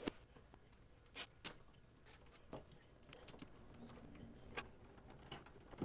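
Cables rustle and click softly as they are handled.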